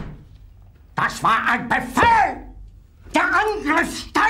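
An older man shouts furiously, close by.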